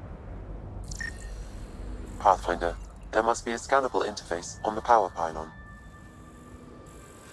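An electronic scanner warbles and chirps loudly.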